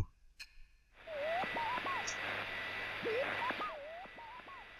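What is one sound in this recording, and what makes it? A television hisses with loud static.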